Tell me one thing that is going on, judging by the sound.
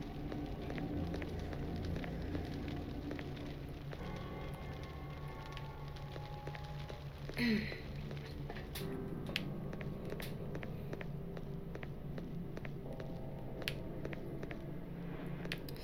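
Footsteps tap on a stone floor in a large echoing hall.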